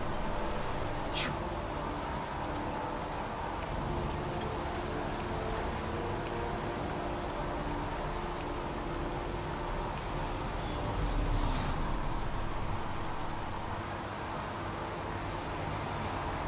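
Steady rain falls outdoors.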